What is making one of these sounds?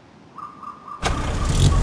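A jeep engine starts up and roars loudly.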